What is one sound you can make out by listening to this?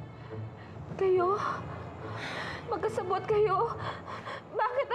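A young woman speaks with emotion, close by.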